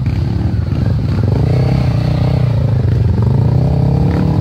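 Motorbike engines rev loudly up close as the bikes climb past.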